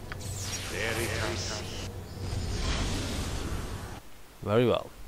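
A magic spell sound effect shimmers.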